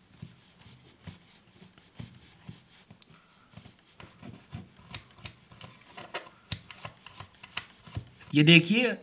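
A toothbrush scrubs a small metal carburettor part.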